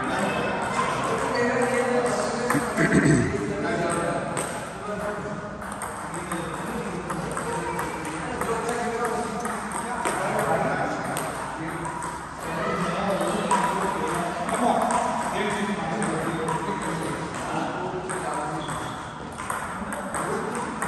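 A ping-pong ball clicks back and forth on a table and paddles.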